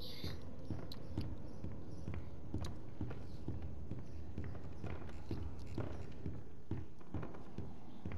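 Footsteps thud steadily on creaky wooden floorboards.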